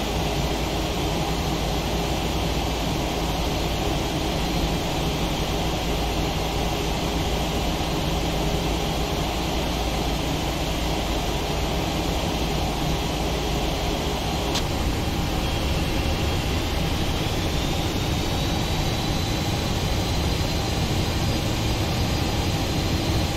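Jet engines hum steadily as an airliner taxis.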